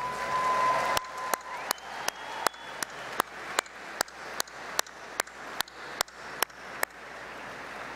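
An elderly man claps his hands close to a microphone.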